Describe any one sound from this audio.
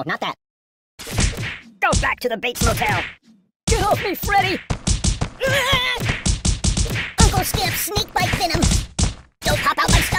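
A blade slashes and thuds against a stuffed doll again and again.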